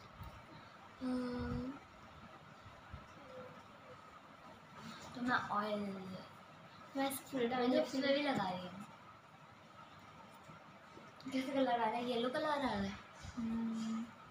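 A young girl sings close by in short phrases.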